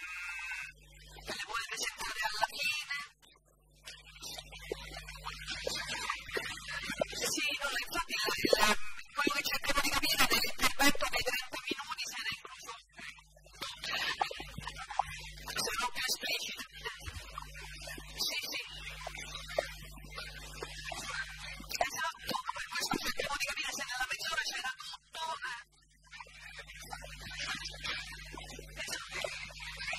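A middle-aged man speaks with animation through a microphone in a large hall.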